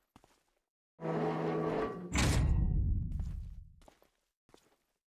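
A heavy metal door creaks open and lands with a deep boom.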